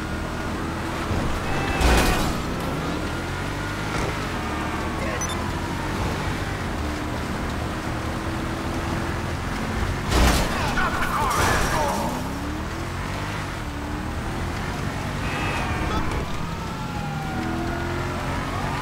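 A car engine roars steadily as it speeds along.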